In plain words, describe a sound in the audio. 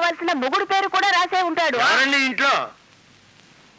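A middle-aged woman speaks loudly and sharply, close by.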